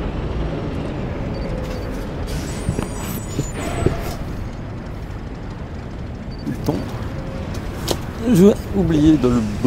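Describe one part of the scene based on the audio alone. A heavy vehicle engine rumbles low and steady.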